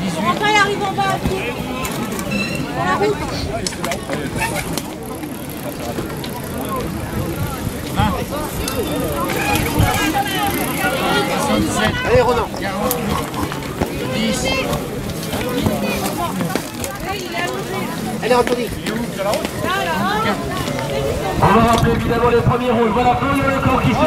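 Bicycle wheels and shoes thud over a wooden barrier.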